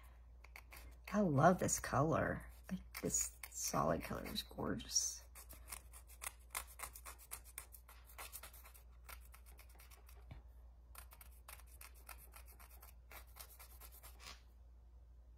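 A nail file rasps back and forth against a fingernail in quick short strokes.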